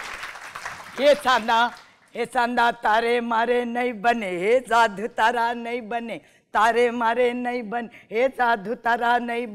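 A middle-aged woman sings in a lively, animated voice, close by in a room.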